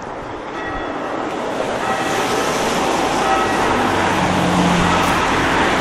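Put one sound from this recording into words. Cars drive past on a wet road.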